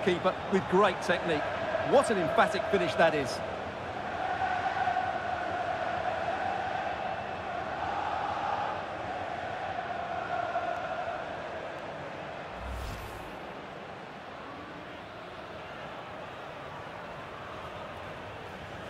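A large crowd roars and cheers in a big stadium, then slowly quiets.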